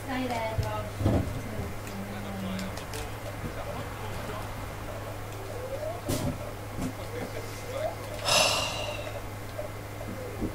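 A young man talks casually into a microphone, close by.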